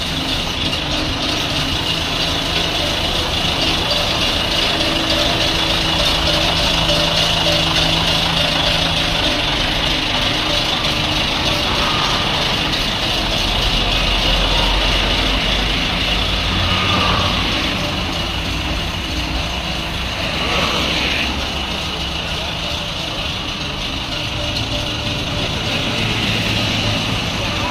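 A diesel mobile crane truck's engine runs with a low rumble.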